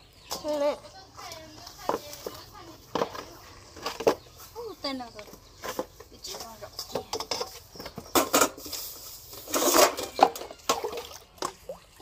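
Metal bowls and pans clank against each other.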